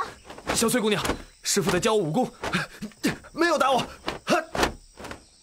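A young man speaks with feeling, close by.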